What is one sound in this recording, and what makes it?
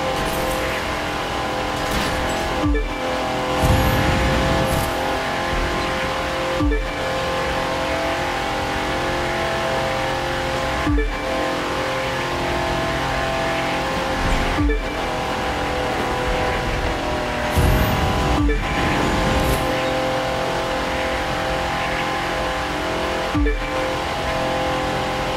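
A racing car engine roars steadily at high revs, dropping briefly at each gear change.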